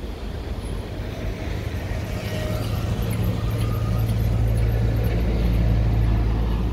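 A bus engine hums close by.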